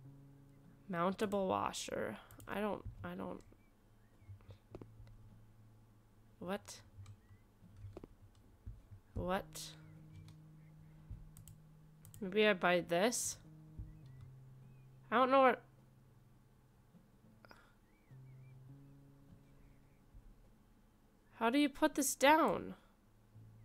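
A young woman talks with animation close to a microphone, in short bursts.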